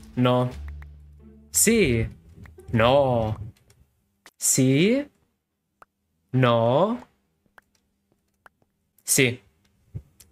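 A young man speaks with animation into a close microphone, in short bursts.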